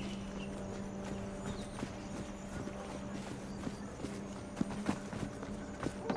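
Footsteps crunch on a hard path.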